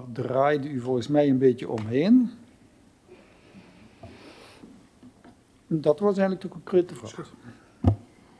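A middle-aged man speaks calmly into a microphone, with pauses.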